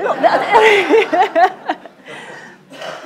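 A woman laughs heartily close by.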